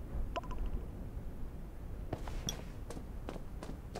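Footsteps thud on dry dirt.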